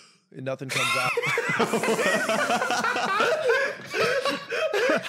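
Several young men laugh loudly together over an online call.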